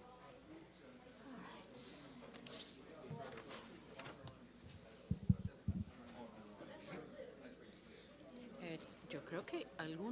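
A man and a woman chat quietly nearby.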